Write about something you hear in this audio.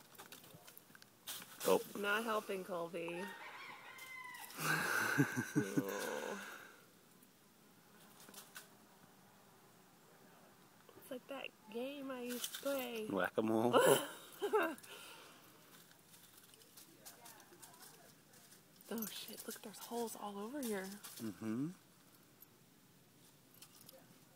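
A dog rustles through dry leaves.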